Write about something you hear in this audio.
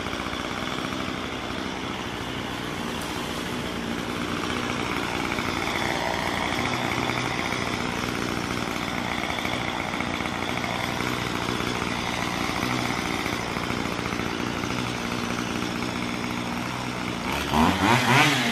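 A chainsaw engine idles with a steady rattle.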